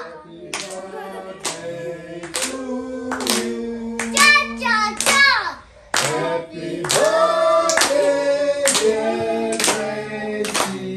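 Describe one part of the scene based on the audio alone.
Hands clap to a steady beat.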